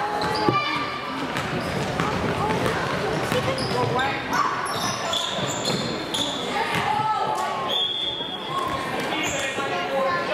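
Sneakers squeak sharply on a wooden floor in an echoing gym.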